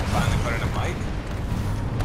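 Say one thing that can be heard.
Heavy robotic footsteps thud nearby.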